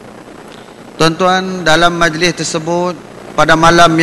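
A man speaks calmly into a microphone, heard through a loudspeaker.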